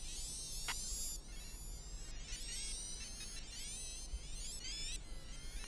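Small electric racing cars whine at high pitch, their motors rising and falling as they speed along.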